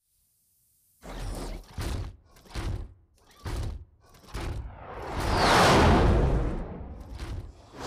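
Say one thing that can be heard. Heavy metallic footsteps thud and boom as a giant robot stomps along.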